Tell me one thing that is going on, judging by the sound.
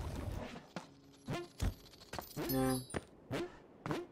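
Short game chimes and blips sound in quick bursts.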